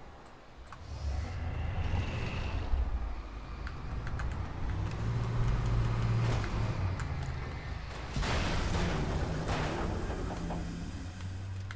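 A heavy machine engine rumbles and roars close by.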